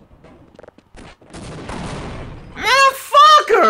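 A grenade explodes with a loud blast.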